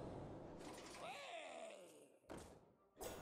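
A magical whoosh and shimmer play as a card attacks.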